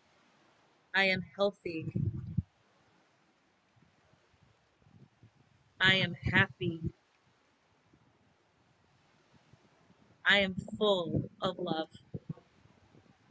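A woman speaks calmly in short bursts, close to the microphone.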